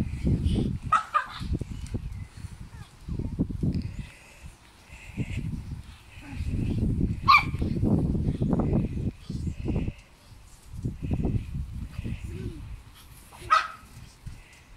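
Puppies yelp sharply now and then while playing.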